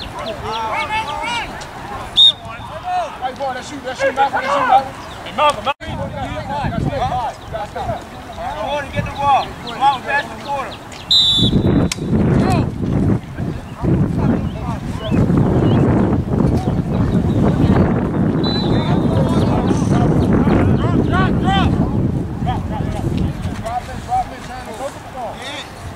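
Young people shout and call out across an open field.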